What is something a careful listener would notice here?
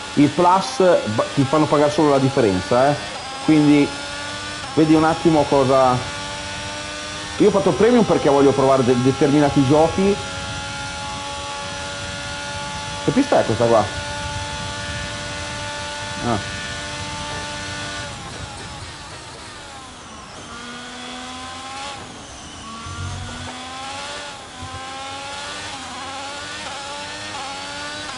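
A racing car engine roars and revs, shifting through gears.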